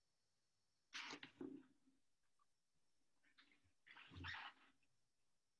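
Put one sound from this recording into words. A brush dabs and scratches lightly on paper.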